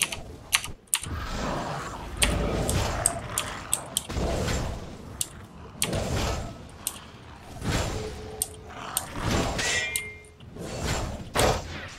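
Weapons strike and thud heavily in a fight.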